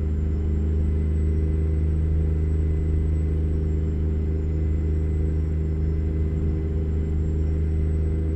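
A truck engine drones steadily at a low pitch while driving.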